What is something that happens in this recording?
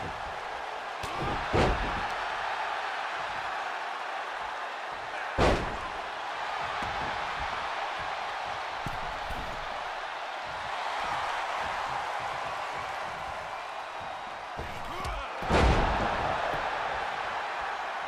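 A large crowd cheers loudly throughout.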